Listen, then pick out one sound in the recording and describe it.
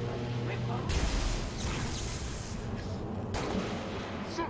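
A gun fires loud, sharp shots.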